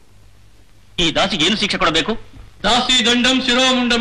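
A man speaks loudly and forcefully, close by.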